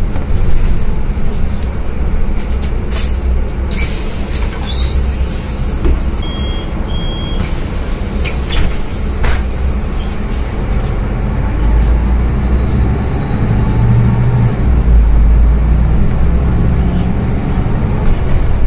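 The bus body rattles and clatters as it rolls.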